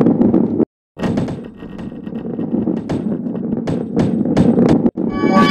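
Wooden boxes clatter and scatter as a ball smashes into them.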